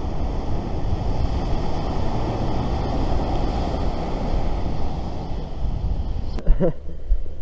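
Waves wash onto a beach nearby.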